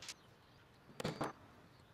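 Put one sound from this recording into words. A hammer taps a nail into wood.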